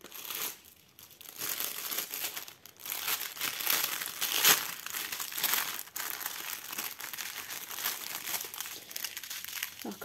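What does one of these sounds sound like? Plastic packaging crinkles and rustles in hands.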